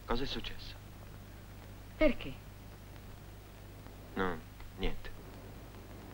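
A man speaks quietly in short phrases, close by.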